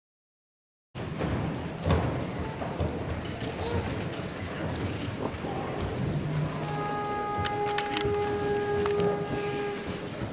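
An audience murmurs quietly in a large echoing hall.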